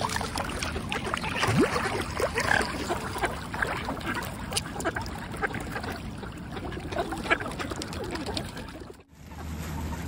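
A flock of mallards quacks and chatters.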